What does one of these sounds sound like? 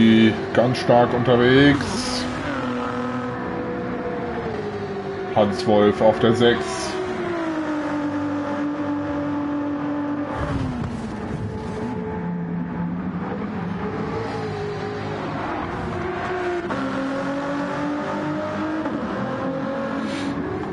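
A racing car engine roars and revs steadily, rising and falling as it shifts gears.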